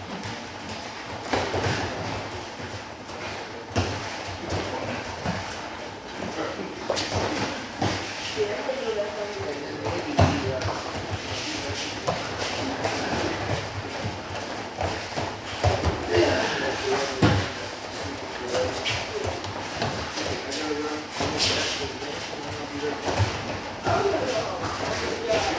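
Bare feet shuffle and thump on a padded mat in a large echoing hall.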